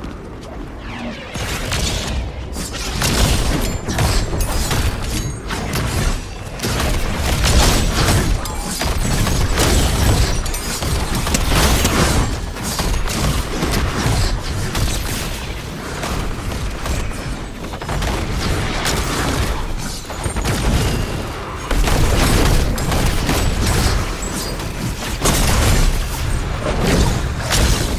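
Game weapons fire and strike in rapid bursts.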